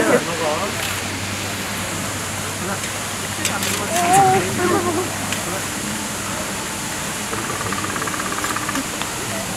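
A metal tool rattles against a wire fence.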